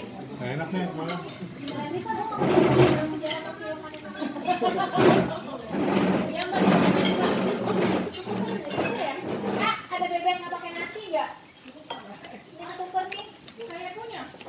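Hands tear apart crispy fried meat.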